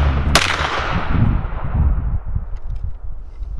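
A rifle shot cracks loudly outdoors and echoes away.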